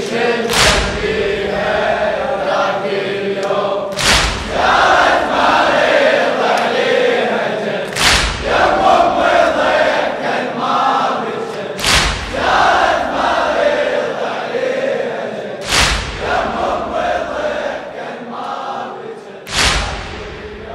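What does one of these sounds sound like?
A crowd of men strikes their chests in unison with heavy slaps every few seconds.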